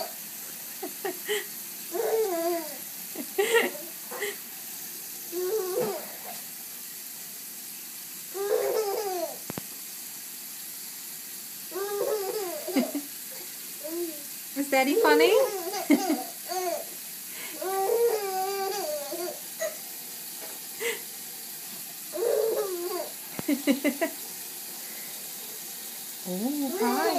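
A baby babbles and laughs happily close by.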